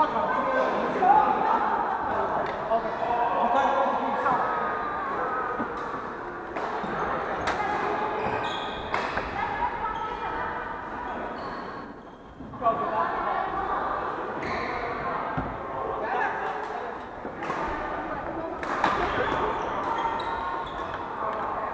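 Men and women call out and chat across the hall.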